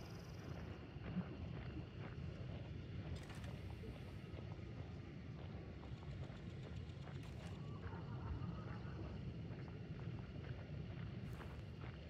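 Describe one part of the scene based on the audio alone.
Footsteps rustle through leafy undergrowth.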